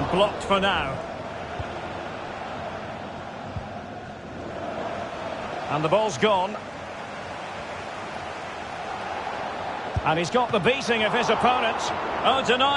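A large stadium crowd roars steadily in the background.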